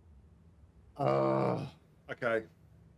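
A man exclaims loudly into a close microphone.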